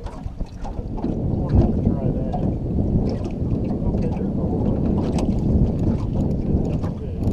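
Water rushes past a moving boat.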